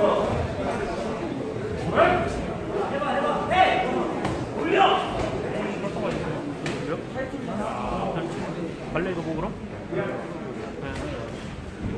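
A man shouts.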